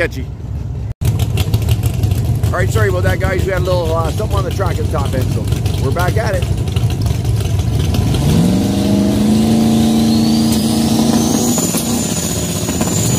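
A race car engine idles with a deep, rough rumble.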